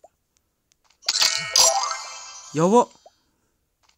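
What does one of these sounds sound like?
A bright jingle rings out as a game's treasure chest opens.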